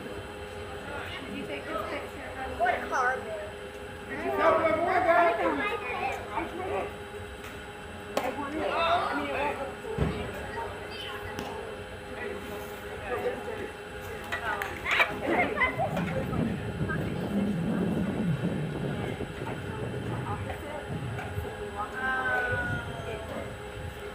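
Young women shout and cheer from across an open field outdoors.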